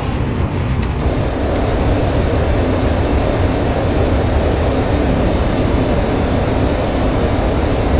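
A jet engine roars loudly from inside a fighter cockpit.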